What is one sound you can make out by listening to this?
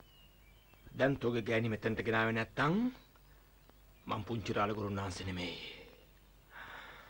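A man speaks firmly and threateningly, close by.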